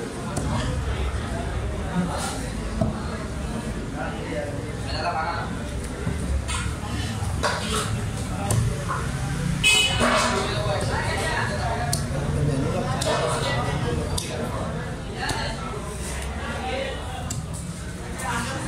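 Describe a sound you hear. A heavy blade knocks and chops into fish on a wooden block.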